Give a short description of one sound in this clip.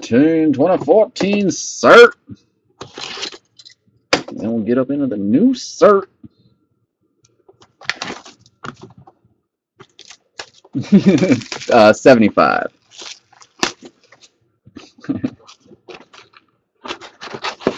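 Cardboard boxes slide and tap on a hard surface.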